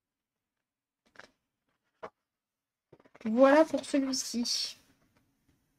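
Paper pages rustle as a book is flipped through.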